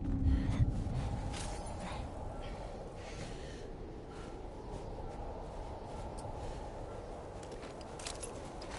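Wind howls steadily outdoors in a snowstorm.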